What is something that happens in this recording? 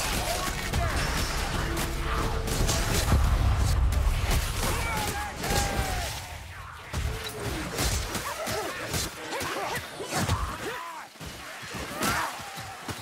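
Weapons clang and thud as blows land.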